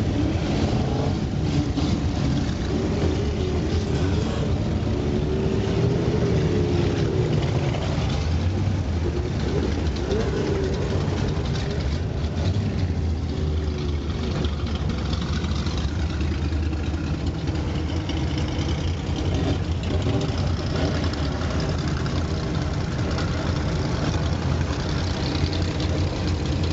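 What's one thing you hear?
Other old car engines rumble and rev nearby.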